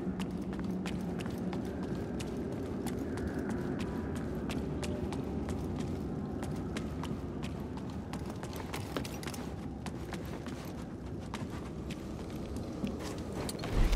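Running footsteps thud on wooden planks.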